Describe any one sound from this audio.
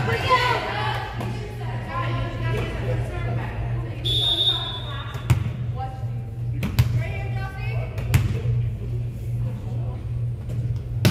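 Young women chatter and call out in an echoing gym.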